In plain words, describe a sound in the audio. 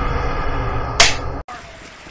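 A clapperboard snaps shut once.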